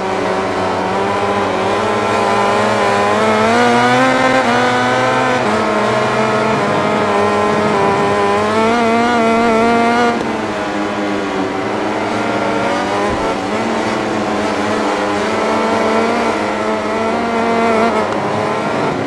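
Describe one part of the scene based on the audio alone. A racing motorcycle engine screams at high revs, rising and falling as it shifts gears.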